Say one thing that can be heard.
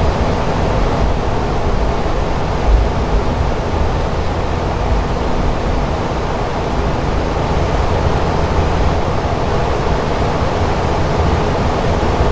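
Aircraft engines drone steadily with a low rumble.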